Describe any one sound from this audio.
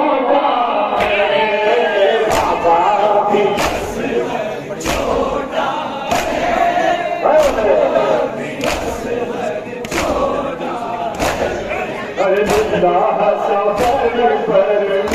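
Many hands beat on chests in rhythm.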